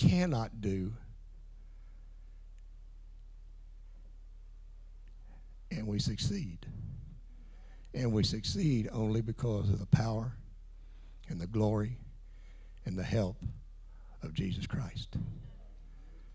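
An older man speaks with animation into a microphone, heard through loudspeakers in a large echoing room.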